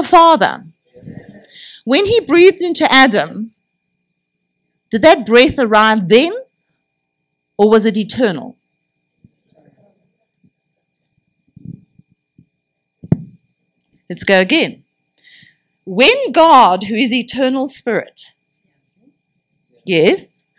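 A middle-aged woman speaks with animation into a microphone, heard over a loudspeaker in a hall.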